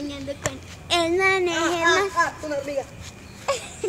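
A young girl squeals loudly close by.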